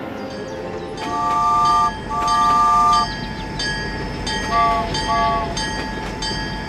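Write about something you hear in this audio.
A toy train's whistle toots in long electronic blasts.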